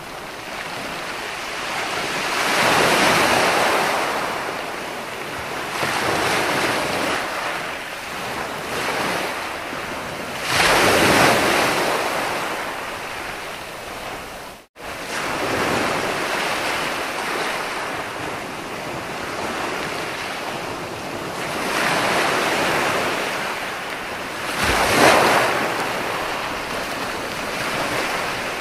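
Waves break and wash up onto a shore in rolling surges.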